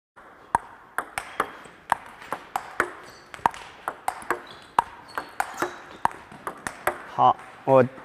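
A ping-pong ball clicks rapidly back and forth off paddles and a table.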